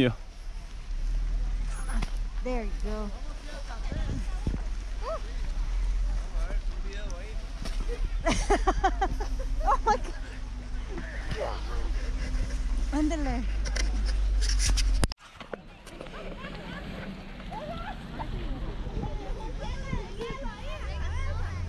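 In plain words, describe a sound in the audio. Children shout and laugh excitedly close by.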